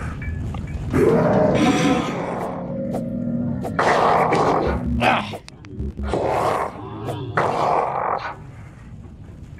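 A creature growls and shrieks close by.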